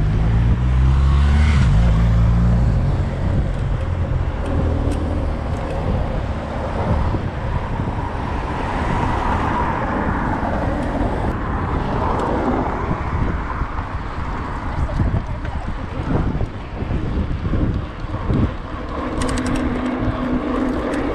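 Bicycle tyres whir on the road.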